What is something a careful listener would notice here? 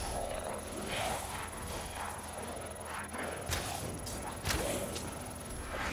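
A flamethrower hisses and roars in bursts.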